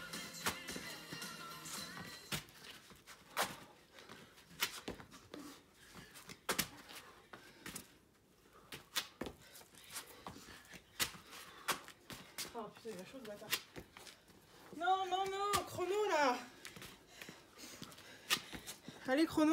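Feet land with sharp slaps on a stone floor.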